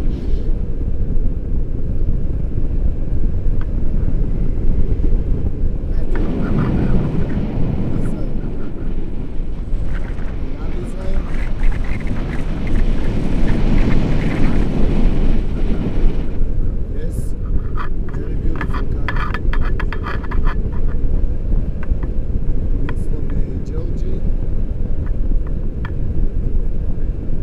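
Strong wind roars and buffets against a microphone.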